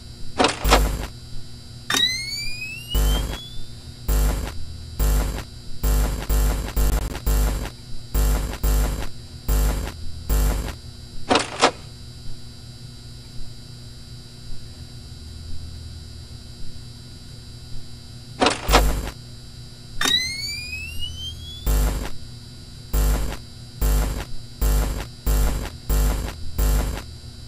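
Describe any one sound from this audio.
Sharp electronic clicks and bursts of static sound again and again.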